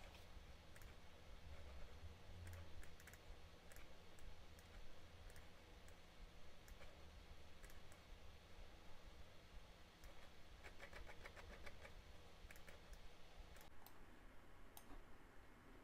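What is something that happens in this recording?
Fingers tap on a laptop keyboard, clicking quickly.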